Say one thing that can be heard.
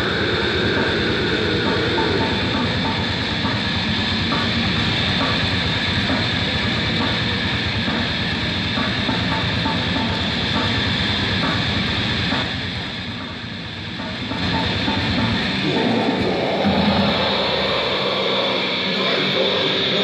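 A band plays loud live music in a dark hall.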